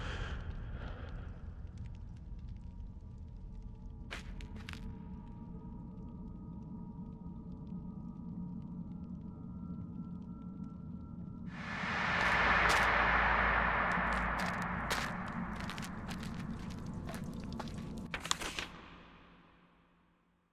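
Flames crackle and rumble low.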